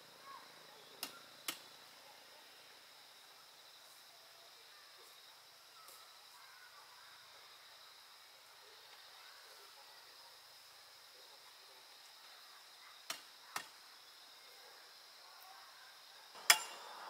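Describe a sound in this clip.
Dry palm fronds snap and crack.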